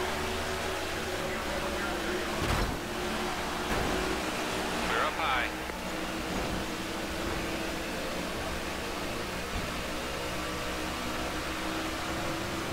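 Other race cars roar close by.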